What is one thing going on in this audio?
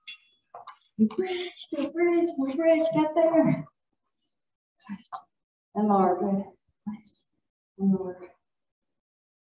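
A woman speaks calmly, giving instructions.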